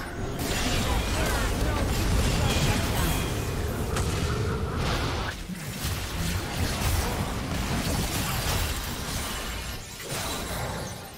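Spell effects and weapon strikes crackle and thump in a fast fight.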